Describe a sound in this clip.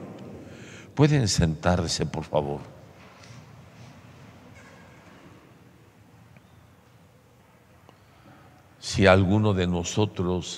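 A man speaks slowly and solemnly through a microphone in a large echoing hall.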